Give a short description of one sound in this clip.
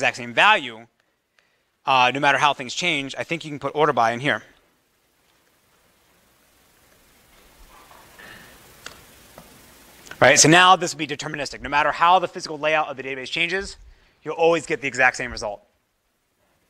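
A man lectures through a microphone in a large room, speaking calmly with pauses.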